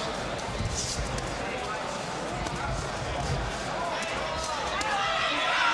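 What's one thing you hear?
Boxing punches thud against gloves and bodies.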